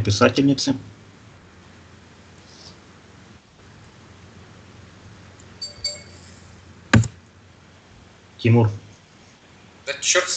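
A man speaks briefly through an online call, in short bursts.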